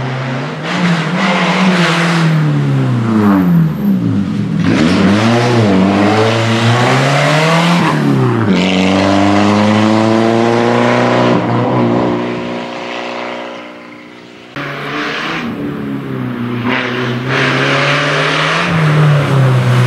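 A rally car engine roars loudly, revving up and down as it passes close by.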